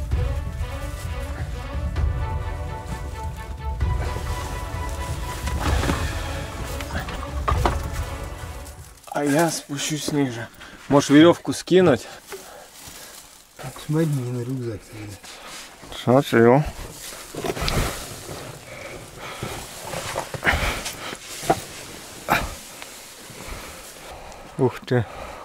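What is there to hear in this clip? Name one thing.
Boots and clothing scrape and shuffle over loose rock close by.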